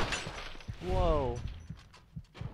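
A gunshot bangs and echoes.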